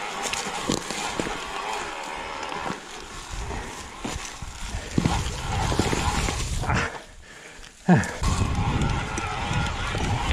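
Bicycle tyres crunch and rattle over dry leaves and stones.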